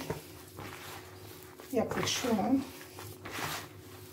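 Hands knead a crumbly mixture in a plastic bowl with soft squishing and rustling.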